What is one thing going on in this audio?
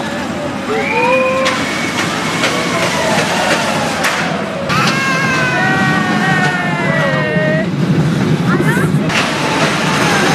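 A roller coaster rattles along its track.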